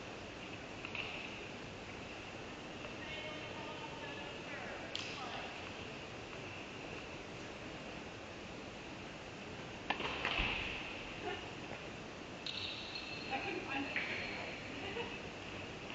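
Tennis balls are struck with rackets in a large echoing hall.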